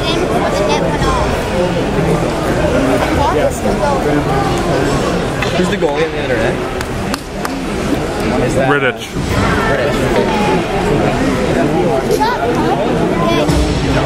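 A crowd of people chatters loudly nearby in a large echoing hall.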